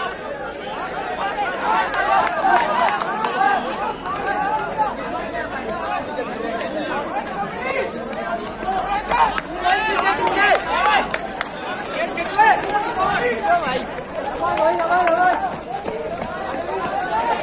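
Young men cheer loudly.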